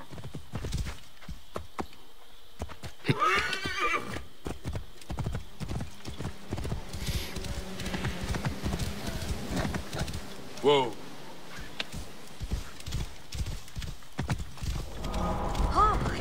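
Horse hooves thud steadily on a dirt road.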